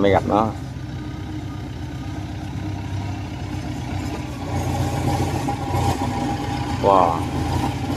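Metal tracks clank and squeak as a heavy machine crawls forward.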